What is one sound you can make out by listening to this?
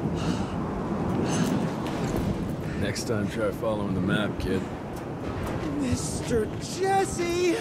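A man speaks in a low, gruff voice.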